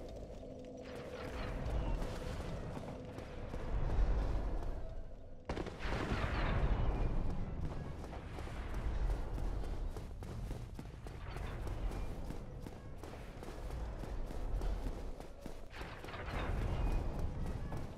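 Armoured footsteps run quickly over stone.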